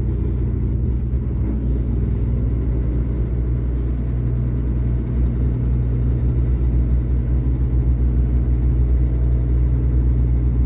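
A nearby truck engine idles with a steady low rumble.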